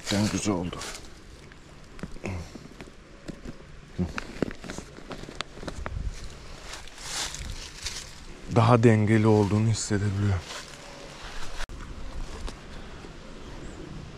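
Buckles on a bag click and rattle as hands handle them.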